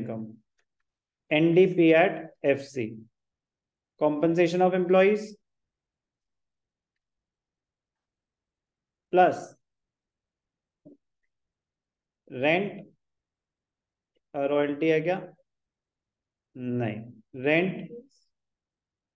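A man speaks calmly into a microphone, explaining in short phrases with pauses.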